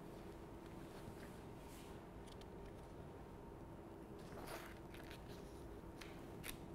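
Papers rustle and shuffle close by.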